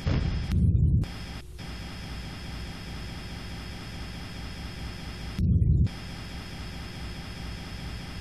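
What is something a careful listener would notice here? A steady low engine hum drones throughout.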